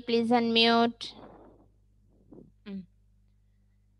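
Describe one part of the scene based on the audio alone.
A child speaks loudly through an online call.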